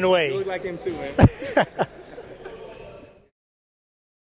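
Two men laugh loudly together.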